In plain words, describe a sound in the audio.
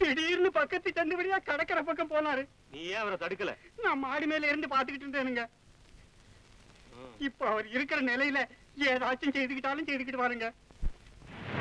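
An elderly man speaks pleadingly, close by.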